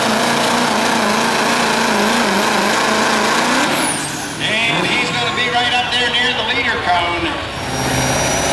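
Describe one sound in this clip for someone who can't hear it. A diesel truck engine roars loudly at full throttle.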